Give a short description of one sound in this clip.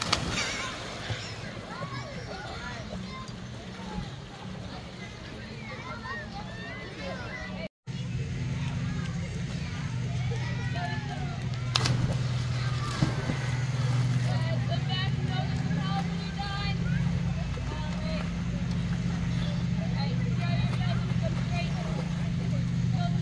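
Swimmers splash in the water.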